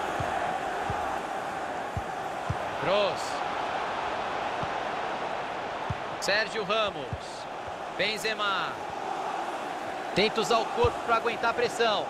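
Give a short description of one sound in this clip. A large stadium crowd roars steadily.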